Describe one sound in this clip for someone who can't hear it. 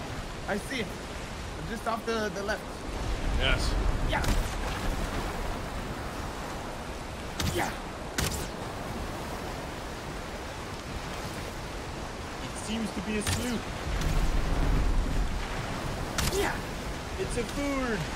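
Wind howls and waves crash in a stormy sea.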